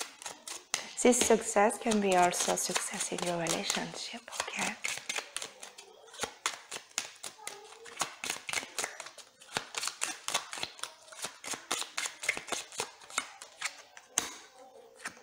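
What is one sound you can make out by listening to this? Playing cards flick and riffle rapidly as they are shuffled by hand.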